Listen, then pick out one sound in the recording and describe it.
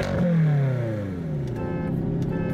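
A car engine revs loudly, then its roar falls away.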